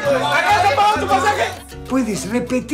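A young man shouts with animation close by.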